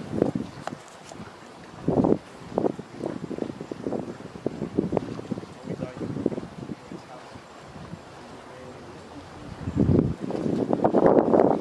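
Small waves lap gently on the water.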